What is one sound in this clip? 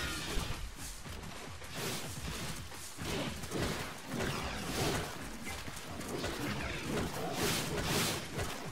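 A tiger growls and snarls while fighting.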